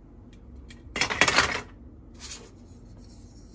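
A plastic toy clatters as it is set down and picked up.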